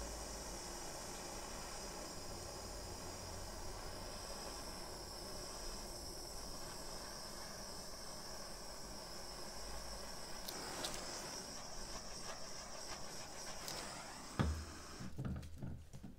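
A heat gun blows with a steady whooshing hum.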